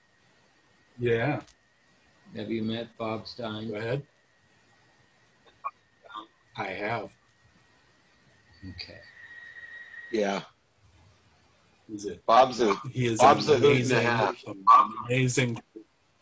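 A man speaks calmly through an online call, in short bursts with pauses.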